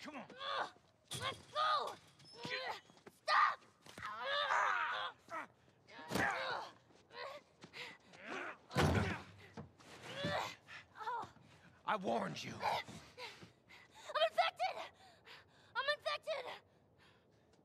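A young woman screams desperately.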